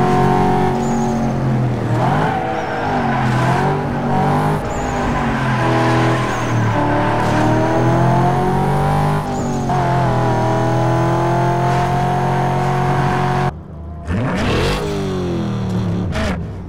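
A car engine roars loudly, its pitch climbing and dropping as it shifts gears.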